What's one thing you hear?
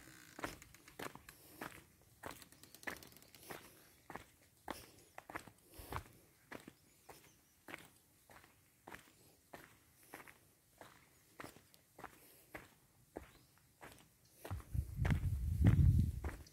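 Footsteps crunch steadily on a dry dirt path.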